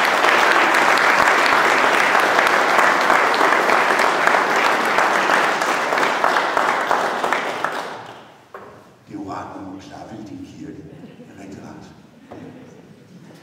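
An electric piano plays chords.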